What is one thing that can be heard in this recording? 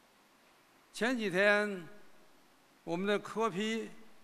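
An elderly man speaks slowly into a microphone in a large echoing hall.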